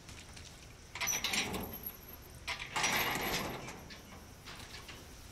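A chain rattles against a metal gate.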